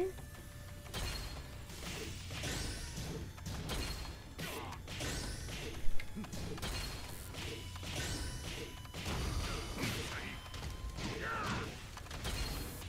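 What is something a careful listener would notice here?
Punches and kicks land with sharp thuds in a fighting game.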